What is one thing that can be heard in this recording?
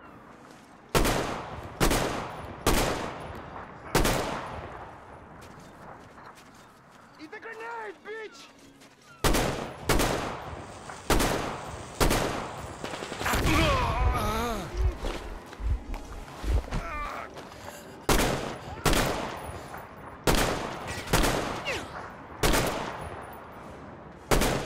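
Loud gunshots ring out one after another, with a rumbling echo.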